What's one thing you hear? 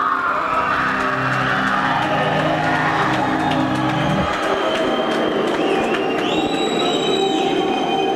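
A band plays loud live music with drums and guitars.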